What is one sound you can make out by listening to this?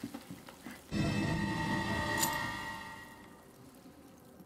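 A bright chime rings out as a key is picked up.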